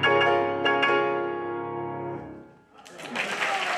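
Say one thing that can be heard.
A piano plays loud final chords that ring out and fade.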